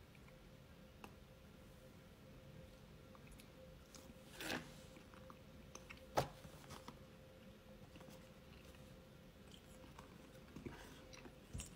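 A man chews on a chewy candy.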